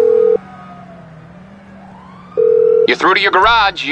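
A phone rings with short electronic beeps.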